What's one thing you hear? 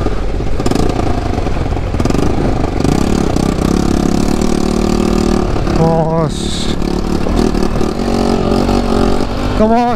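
Other motorcycles ride close ahead and pass by.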